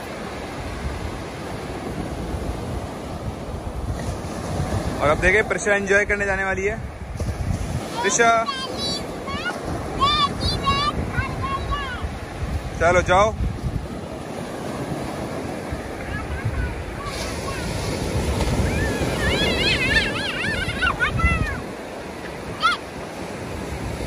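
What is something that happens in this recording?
Waves crash and wash up on a beach.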